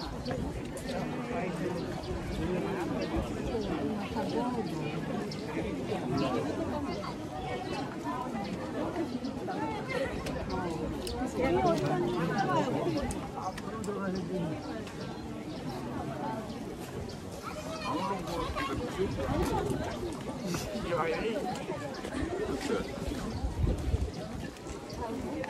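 A crowd of men and women chatter all around, outdoors.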